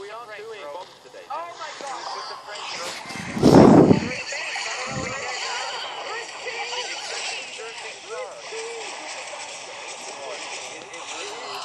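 Cartoonish battle sound effects clatter and chime steadily.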